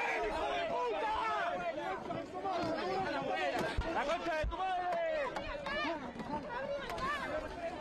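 A crowd of men and women shouts and screams close by.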